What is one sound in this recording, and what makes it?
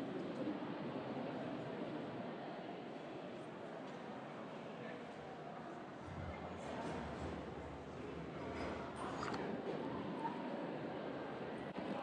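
A crowd murmurs in the distance in a large, echoing space.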